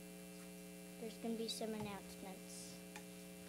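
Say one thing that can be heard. A young girl speaks softly into a microphone.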